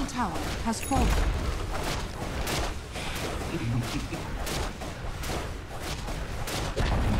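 Fiery magic blasts crackle and roar.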